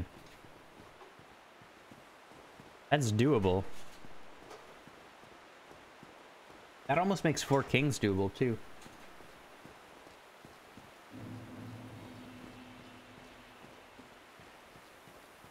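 Footsteps run over stone and grass.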